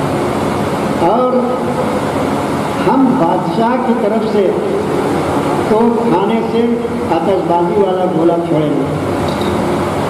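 An elderly man speaks with feeling into a microphone in an echoing hall.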